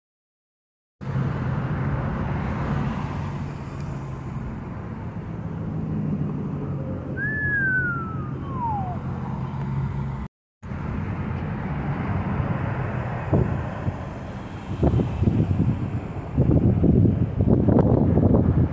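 Traffic rumbles past on a busy road.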